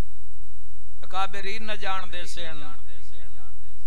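A man speaks with emotion into a microphone, his voice loud and echoing.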